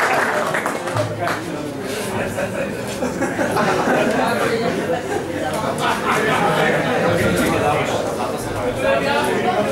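A man reads out into a microphone, heard through a loudspeaker.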